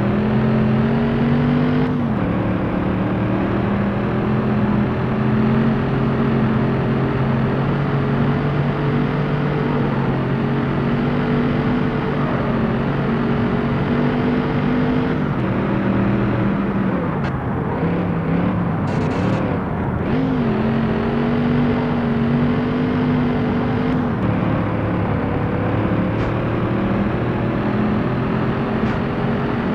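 A supercharged V8 sports car engine roars at high revs in a racing game, shifting through the gears.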